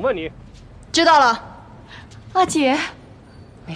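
A second young woman answers urgently.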